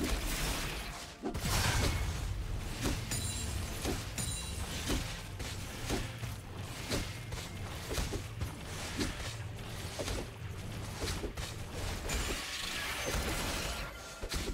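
Game spell effects crackle and burst in quick succession.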